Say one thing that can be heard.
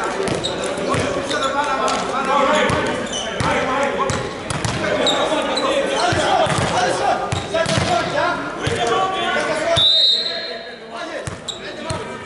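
Several men talk and call out in a large echoing hall.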